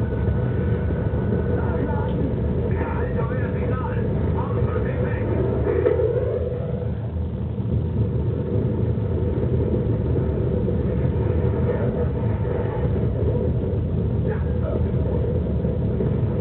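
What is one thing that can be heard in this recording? Explosions boom and rumble through a loudspeaker.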